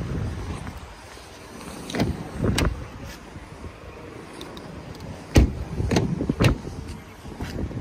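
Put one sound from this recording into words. A car door clicks open and thuds.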